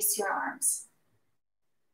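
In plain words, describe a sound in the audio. A woman speaks calmly and softly close by, then falls silent.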